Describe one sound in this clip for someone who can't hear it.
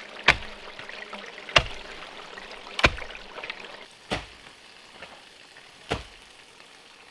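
A blade chops sharply into bamboo with loud knocks.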